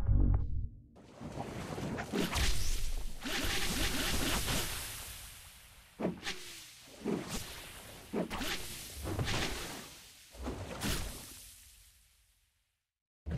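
Giant monsters roar and screech loudly.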